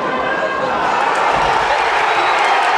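A crowd cheers louder toward the end.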